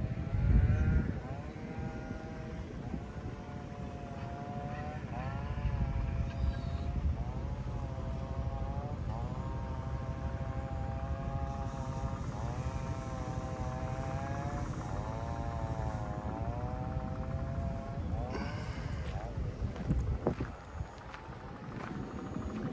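Wind blows and rumbles outdoors.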